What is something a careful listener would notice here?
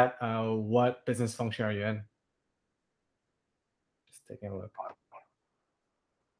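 A young man speaks calmly through an online call.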